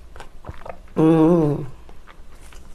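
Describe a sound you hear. A young woman lets out a short, loud hum close up.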